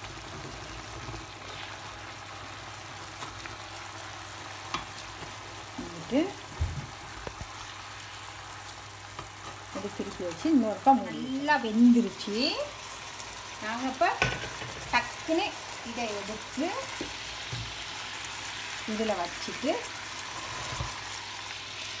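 A metal fork clinks and scrapes against a pan.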